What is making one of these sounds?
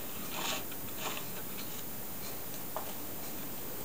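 A metal tool scrapes lightly against a turning wooden wheel.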